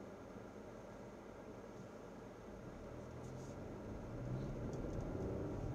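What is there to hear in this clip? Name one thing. A car engine hums steadily from inside the vehicle, growing a little louder.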